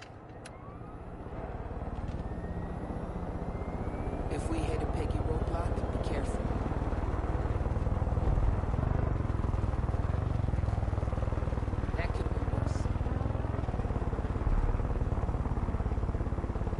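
A helicopter engine whirs steadily with a rumbling drone.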